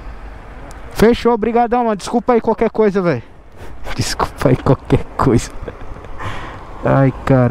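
A man speaks up close with animation.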